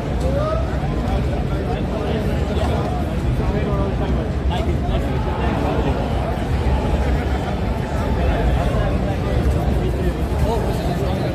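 A large crowd chatters loudly all around in a big echoing hall.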